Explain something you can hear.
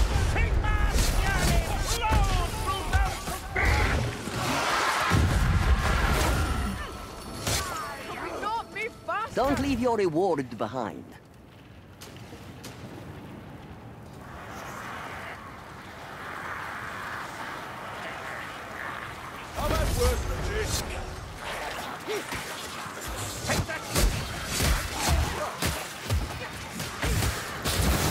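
Monstrous creatures growl and screech.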